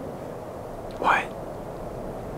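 A young man says a single word in a low voice, close by.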